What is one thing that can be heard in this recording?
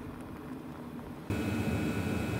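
A car drives past on a road.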